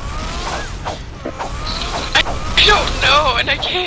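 Magic spells burst with bright crackling zaps.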